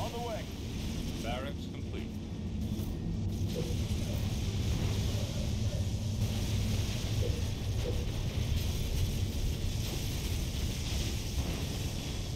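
Energy weapons fire in short bursts.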